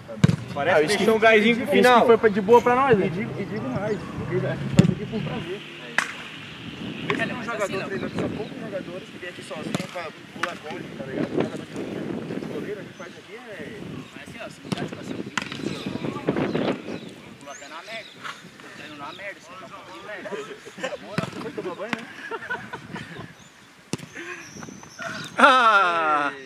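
A ball is kicked with sharp thuds.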